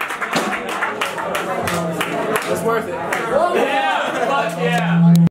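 A band plays loud live rock music.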